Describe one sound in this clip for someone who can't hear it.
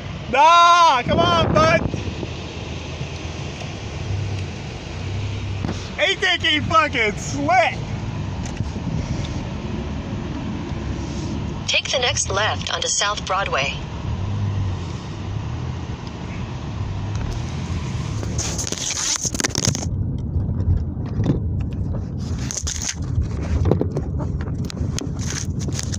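A car engine rumbles low and steady from inside a moving car.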